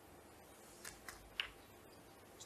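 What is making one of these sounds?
Snooker balls click together on the table.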